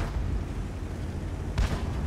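A shell explodes in the distance.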